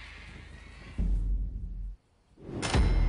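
A heavy truck door slams shut.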